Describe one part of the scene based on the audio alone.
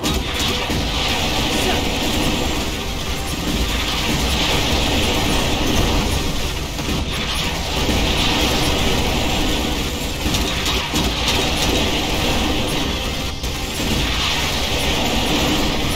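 Explosions boom with deep rumbling.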